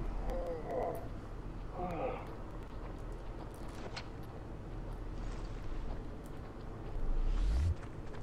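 Footsteps run on gravel.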